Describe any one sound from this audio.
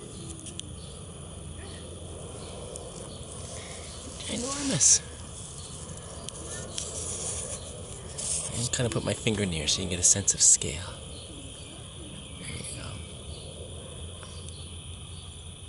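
A bumblebee buzzes softly close by.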